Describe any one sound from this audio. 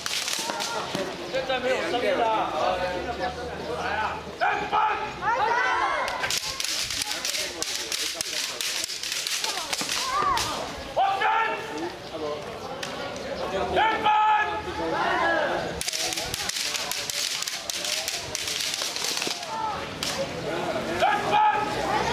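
Bamboo swords clack against each other again and again.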